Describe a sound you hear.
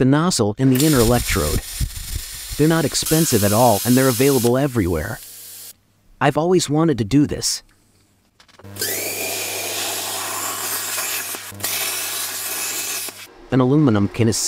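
A plasma cutter hisses and crackles.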